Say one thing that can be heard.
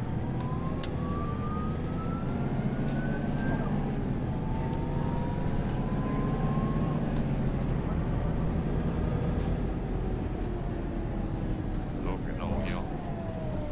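Clicks and ticks sound now and then inside the bus.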